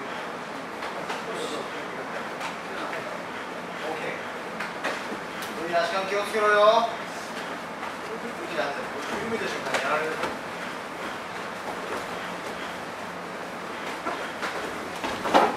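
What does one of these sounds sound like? Punches and kicks thud on bodies during sparring.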